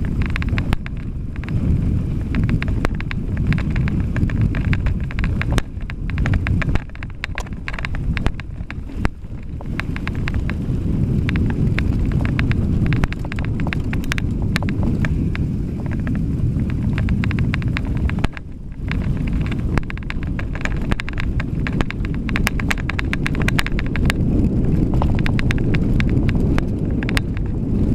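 Wind rumbles loudly against a microphone while riding.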